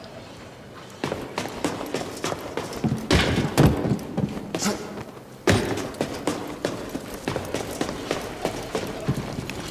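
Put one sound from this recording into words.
Footsteps clang on metal walkways.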